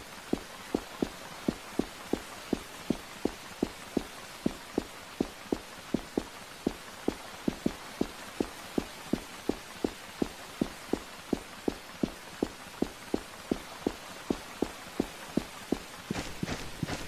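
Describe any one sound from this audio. Quick, even footsteps tap along a hard floor.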